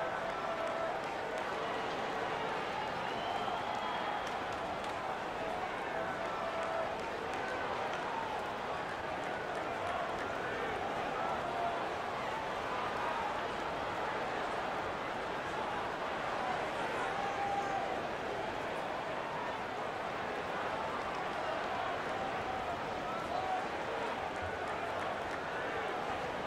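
A large crowd murmurs and chatters steadily in a big echoing arena.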